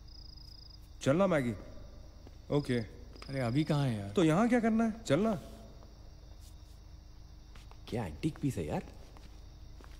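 A young man speaks tensely nearby.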